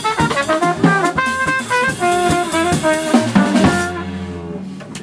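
A trumpet plays a loud jazz melody.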